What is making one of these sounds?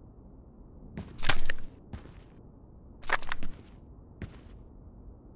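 A rifle fires short bursts of gunshots.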